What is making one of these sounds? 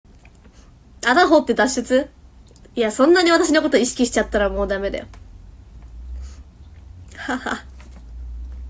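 A young woman speaks brightly and close to a microphone, with pauses.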